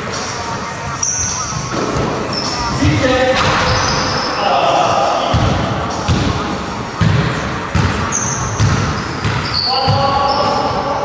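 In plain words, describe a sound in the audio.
Sneakers squeak sharply on the wooden floor.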